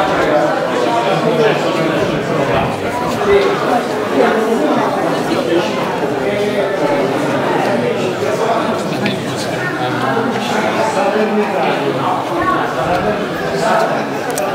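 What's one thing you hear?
Footsteps shuffle.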